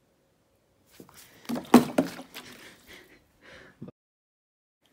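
Water splashes out of a plastic bottle onto a person.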